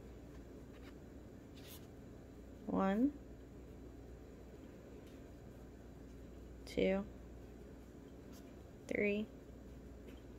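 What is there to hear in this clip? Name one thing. Yarn softly rustles as a crochet hook pulls it through loops.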